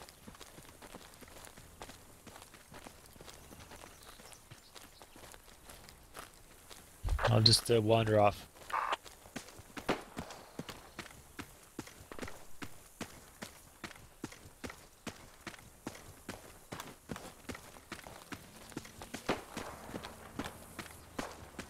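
Footsteps crunch on dry grass at a steady walking pace.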